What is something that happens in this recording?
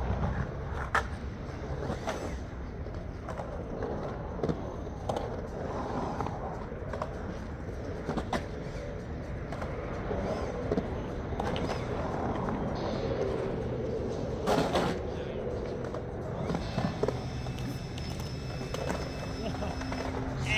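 Skateboard wheels roll and rumble across concrete.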